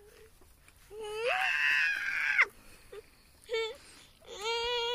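A small child talks close by.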